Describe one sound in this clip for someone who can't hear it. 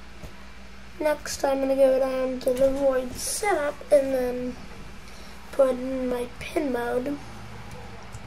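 A young boy speaks close to a microphone.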